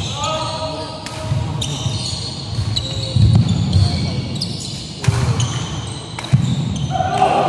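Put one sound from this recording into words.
Badminton rackets smack a shuttlecock in a large echoing hall.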